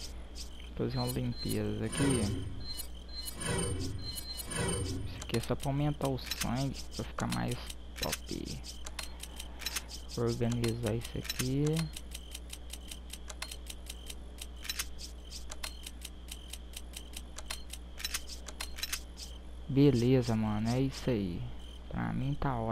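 Short electronic menu clicks tick again and again.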